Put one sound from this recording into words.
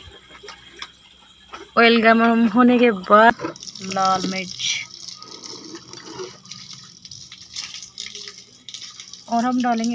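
Oil pours in a thin stream into a metal bowl.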